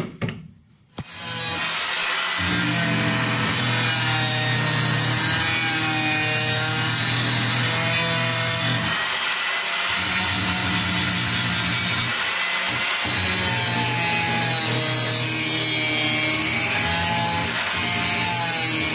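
An angle grinder whines loudly as it cuts metal.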